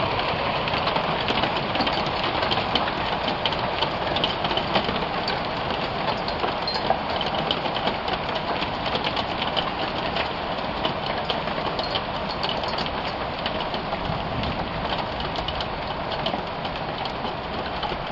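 Rain patters steadily on a metal floor outdoors.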